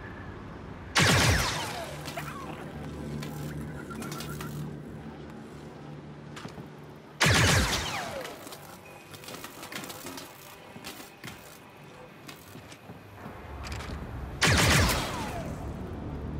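A blaster fires loud zapping shots that ring out and fade.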